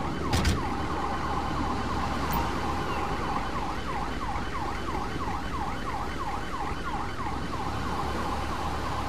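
A siren wails rapidly nearby.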